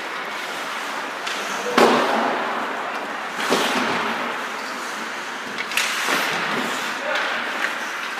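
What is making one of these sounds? Skate blades scrape and hiss on ice.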